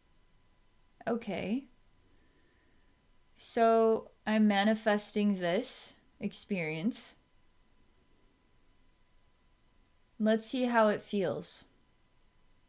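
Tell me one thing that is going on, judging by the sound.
A woman speaks softly and slowly into a close microphone, with long pauses.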